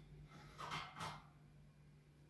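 A lamp switch clicks.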